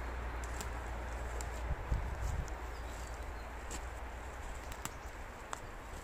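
Footsteps crunch softly on a forest floor.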